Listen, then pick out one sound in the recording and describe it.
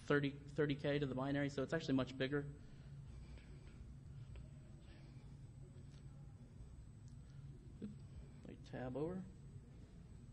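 A man speaks calmly through a microphone, with long pauses.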